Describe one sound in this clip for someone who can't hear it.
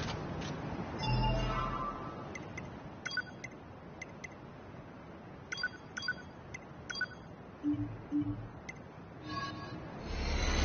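Short electronic menu beeps sound one after another.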